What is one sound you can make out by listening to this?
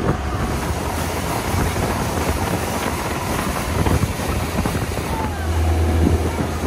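A boat engine roars loudly and steadily.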